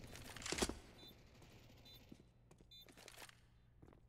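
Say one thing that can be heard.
A planted bomb beeps at a steady pace.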